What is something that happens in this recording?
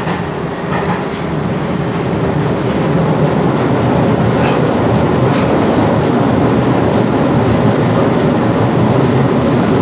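A subway car rumbles steadily along the tracks.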